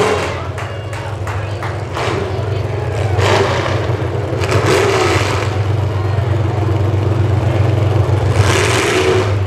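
Car engines idle with a low rumble.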